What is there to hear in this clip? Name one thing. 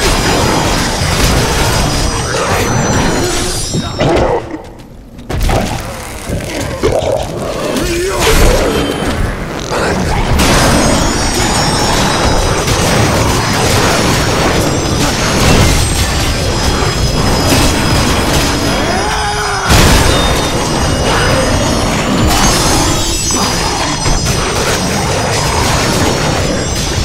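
Magic blasts burst with crackling noise.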